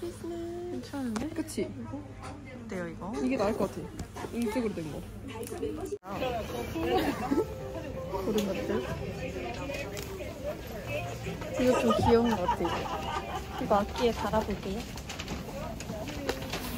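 Plastic packaging crinkles in hands.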